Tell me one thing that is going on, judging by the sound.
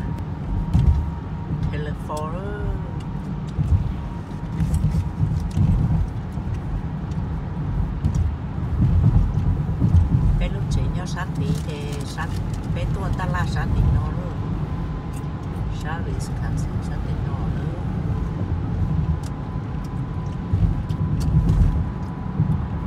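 A car's engine hums and its tyres rumble steadily on a highway, heard from inside.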